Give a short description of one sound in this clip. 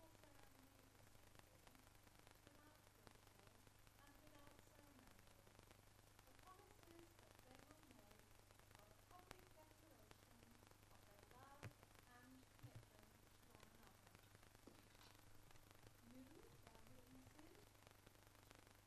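Adult men and women talk quietly in the background.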